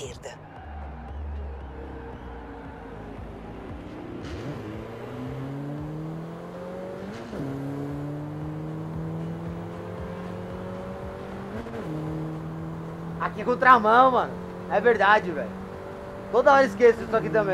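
A car engine revs higher and higher, dropping briefly with each gear change.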